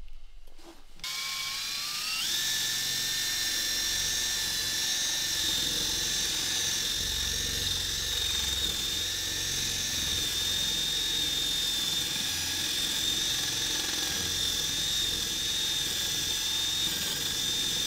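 A cordless drill whirs steadily, its pitch rising as it spins up.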